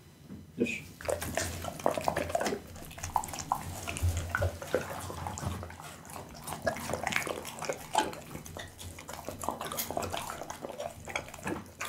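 A dog chews and tears at raw meat close by, with wet smacking and crunching.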